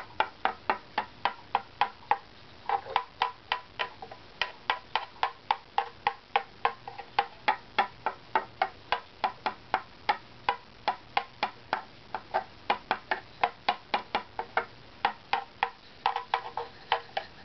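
A small blade scrapes wood in quick, short strokes.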